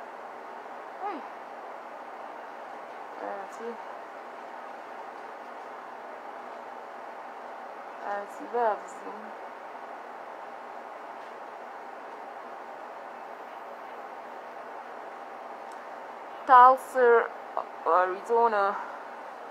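A young woman speaks in short bursts close to a phone microphone.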